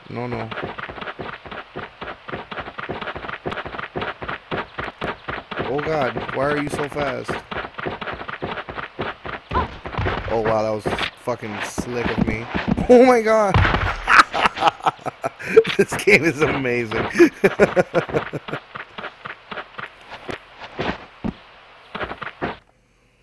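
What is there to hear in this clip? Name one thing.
Quick footsteps patter across snow.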